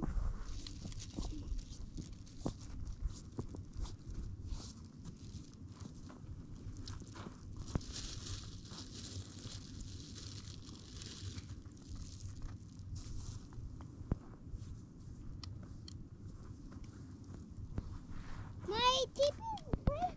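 Wind blows steadily across open ground outdoors.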